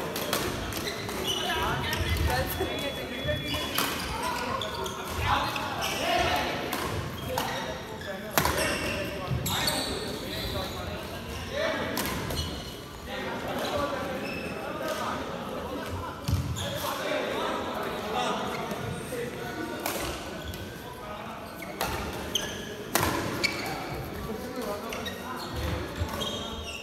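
Shoes squeak and thud on a court floor.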